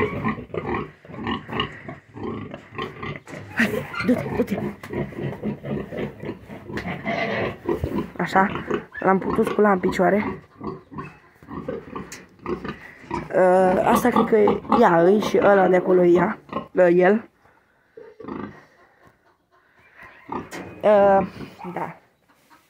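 Pigs grunt and snort close by.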